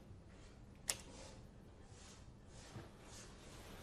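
Bedding rustles softly as a person shifts in bed.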